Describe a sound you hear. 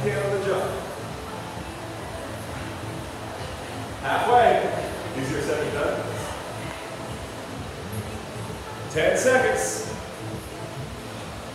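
A man calls out loudly in an echoing room.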